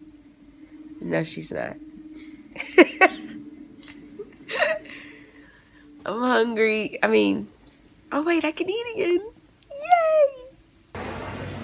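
A young woman laughs and talks with animation close by.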